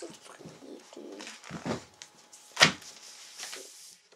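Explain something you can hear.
Paper rustles as a book's pages are turned.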